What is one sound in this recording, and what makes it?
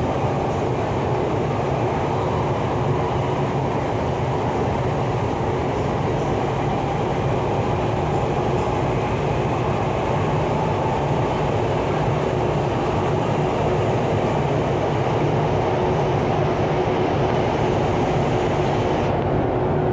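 An electric commuter train rumbles and hums at speed, heard from inside the carriage.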